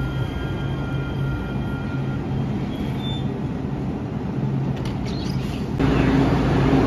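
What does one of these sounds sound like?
A light rail train idles with a steady low hum outdoors.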